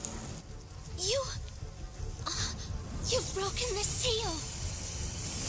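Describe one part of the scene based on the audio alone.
A young girl speaks with animation.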